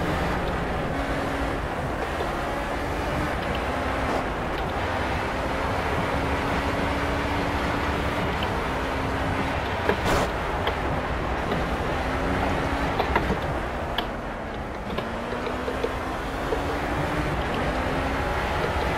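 An open-wheel race car engine roars at high speed, its pitch rising and falling with the gears.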